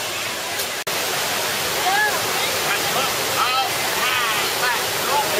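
Water splashes steadily in a pool.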